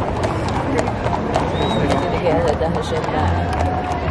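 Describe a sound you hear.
Horse hooves clop on pavement nearby.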